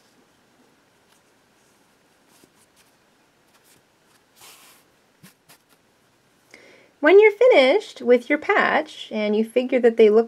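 Yarn rustles softly as a needle pulls it through knitted stitches.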